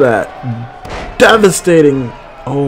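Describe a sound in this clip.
A body slams hard onto a wrestling mat with a heavy thud.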